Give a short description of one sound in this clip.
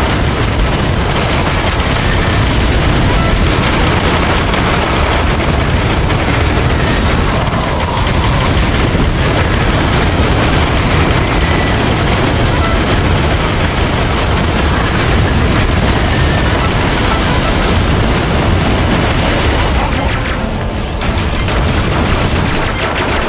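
Gunfire rattles steadily.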